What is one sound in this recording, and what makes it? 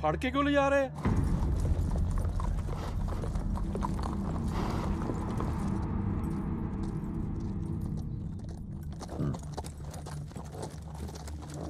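Horses' hooves clop on packed earth.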